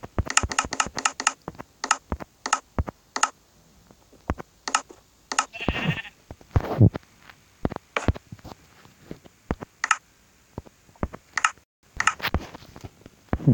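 Menu buttons click in quick succession.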